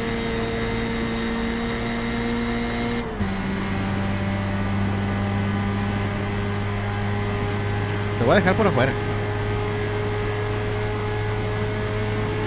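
A racing car engine drones at high revs and shifts gear once.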